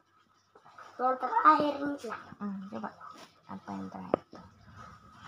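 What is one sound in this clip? A young boy talks nearby with animation.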